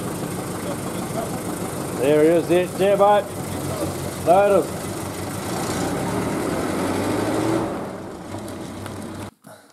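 A pickup truck's engine idles and then pulls away.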